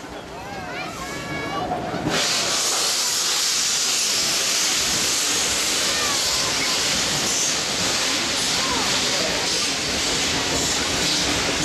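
Train carriages roll slowly along the rails.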